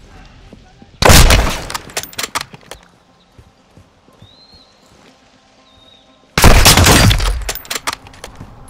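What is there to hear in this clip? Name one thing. A rifle fires loud, booming shots that echo off walls.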